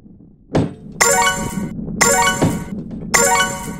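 Bright chiming notes ring out as coins are collected in a game.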